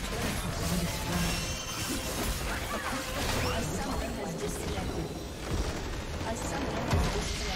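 Game combat effects clash and crackle rapidly.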